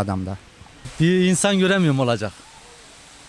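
A young man speaks briefly into a microphone up close.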